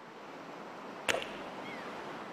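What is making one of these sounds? A golf club whooshes and strikes a ball with a sharp crack.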